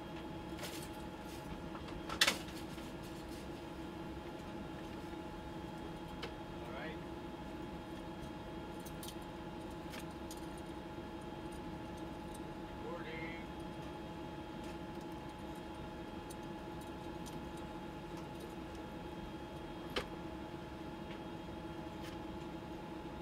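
Ventilation equipment hums steadily.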